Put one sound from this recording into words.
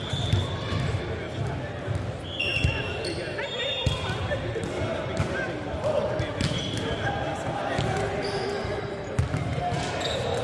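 A volleyball is struck with sharp thuds.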